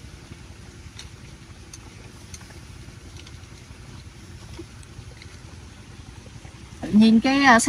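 Metal tongs clink against clam shells.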